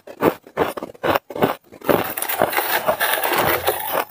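Hands scoop and rustle loose shaved ice.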